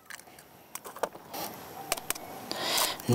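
An eggshell cracks against a bowl.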